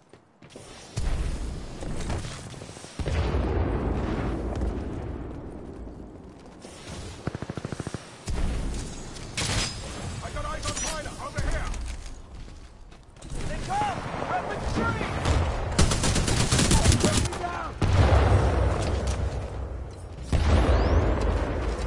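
Loud explosions and battle noise rumble.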